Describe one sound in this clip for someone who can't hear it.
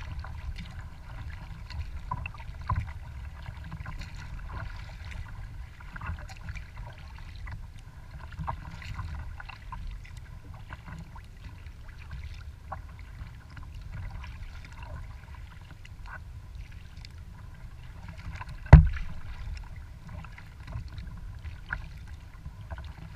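Wind rumbles over the water outdoors.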